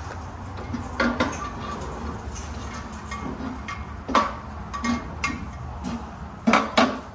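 Metal parts clank and click up close.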